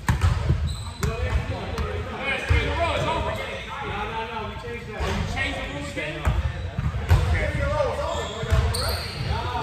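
Young men call out to each other across an echoing gym.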